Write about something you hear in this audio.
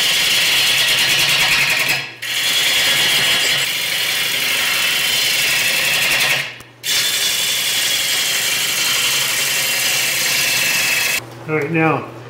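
A lathe chisel scrapes loudly against spinning wood.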